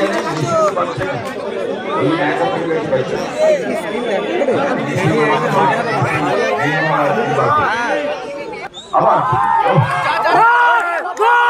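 A large outdoor crowd cheers and shouts loudly.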